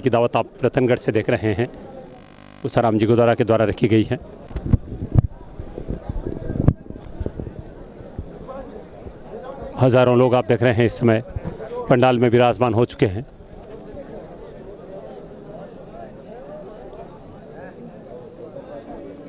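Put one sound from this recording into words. A large crowd murmurs and chatters.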